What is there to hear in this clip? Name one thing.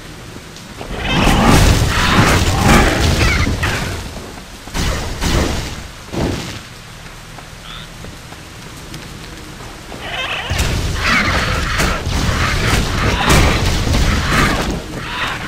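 Bursts of fire roar and crackle loudly.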